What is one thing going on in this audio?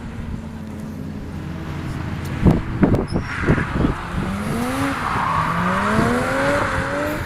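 Tyres swish over a wet track.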